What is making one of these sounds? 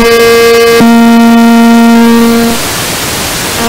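A woman sings a long held note into a microphone.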